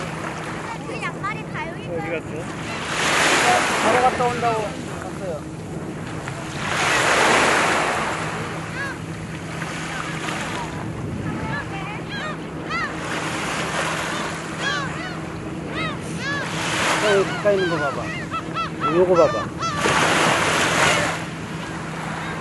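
Small waves break and wash up on the shore in surges.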